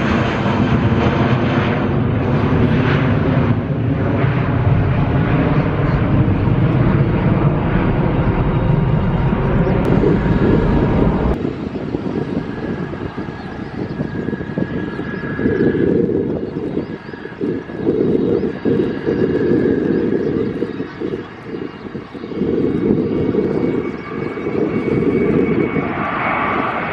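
A jet airliner's engines roar loudly as it climbs overhead.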